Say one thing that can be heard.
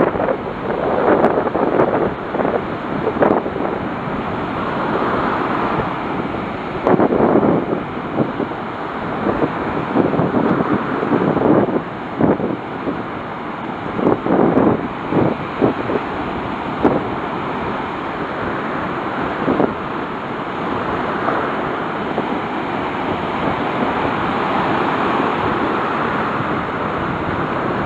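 Waves crash and wash up onto a sandy shore.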